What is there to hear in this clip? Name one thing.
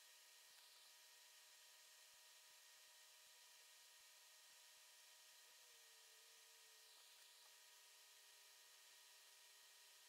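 A metal probe tip taps lightly against a circuit board.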